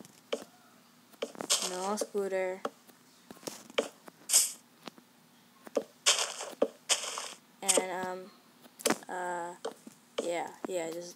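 Wooden blocks are placed with short, soft knocks.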